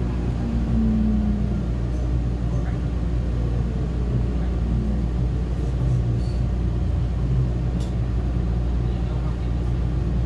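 Another train rushes past close by.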